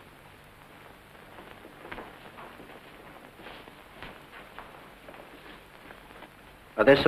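Boots tread on a floor as several men march out.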